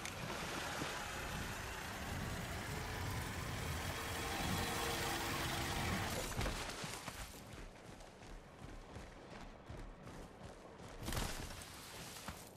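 Quick footsteps run over grass and dirt.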